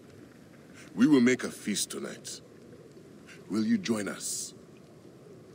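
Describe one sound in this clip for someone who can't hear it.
An elderly man speaks warmly and calmly, close by.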